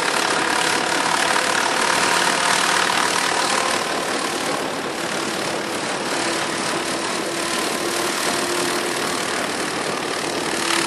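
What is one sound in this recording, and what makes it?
A small helicopter's engine whines and its rotor buzzes steadily overhead.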